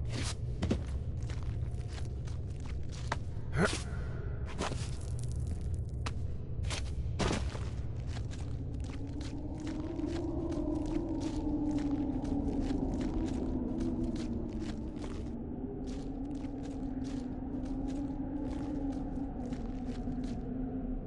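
Footsteps crunch on snow and gravel.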